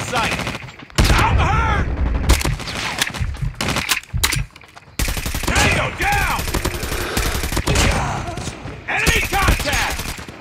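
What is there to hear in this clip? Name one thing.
Automatic rifle fire rattles in loud, rapid bursts.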